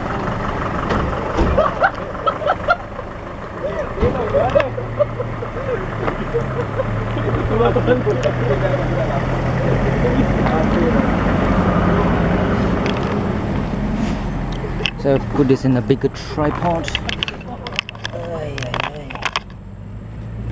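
Several men and women talk nearby, outdoors.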